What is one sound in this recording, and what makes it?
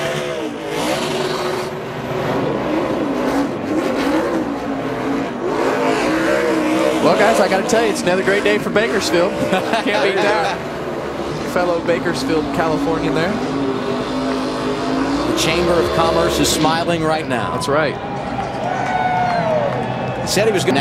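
A race car engine roars and revs up and down.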